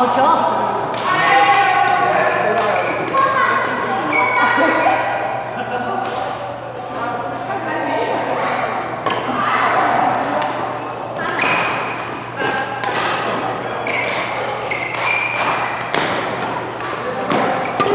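Rackets strike a shuttlecock in quick rallies, echoing in a large hall.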